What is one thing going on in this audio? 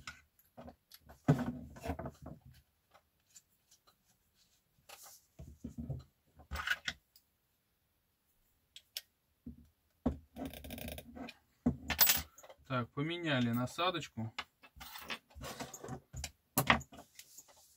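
Small parts click and tap as they are handled.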